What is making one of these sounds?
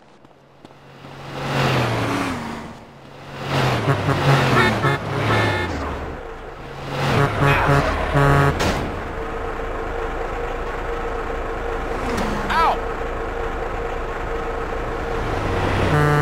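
A truck engine rumbles as a truck drives past and stops.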